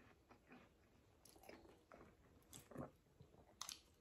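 A man bites into crunchy food.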